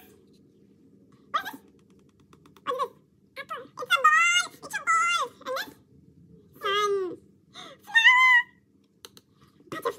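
A small girl speaks in a high voice.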